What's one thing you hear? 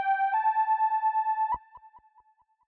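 An electronic synthesizer plays a short tone.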